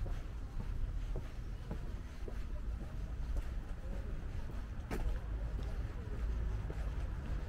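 Footsteps tap steadily on a pavement.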